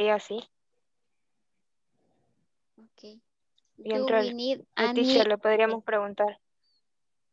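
A young woman speaks with animation through an online call.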